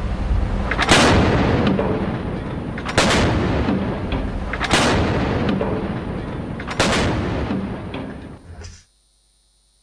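A ship's deck gun fires loud booming shots in steady succession.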